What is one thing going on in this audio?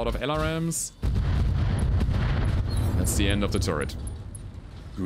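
Heavy explosions rumble loudly.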